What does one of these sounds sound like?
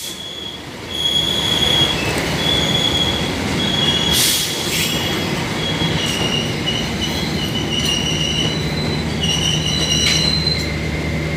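Train brakes squeal in high, drawn-out tones.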